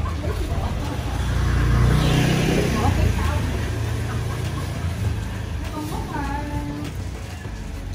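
A fabric cover rustles as it is pulled off a motorcycle.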